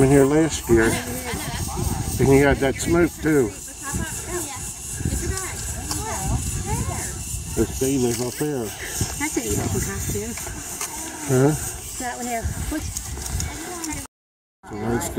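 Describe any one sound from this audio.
A group of adult men and women chatter and call out nearby outdoors.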